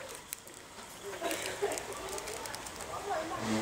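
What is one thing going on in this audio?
A wrapper crinkles close by.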